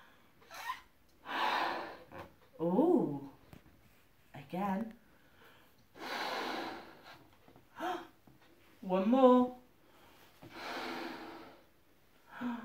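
A woman blows hard into a balloon in long puffs.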